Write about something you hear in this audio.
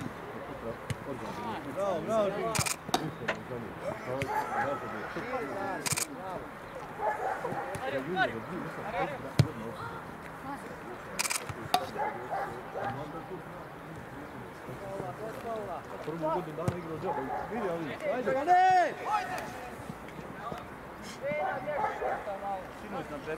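Young men shout and call to each other outdoors, some way off.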